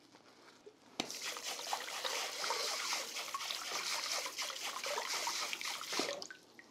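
Water runs from a tap and splashes over a knife into a basin.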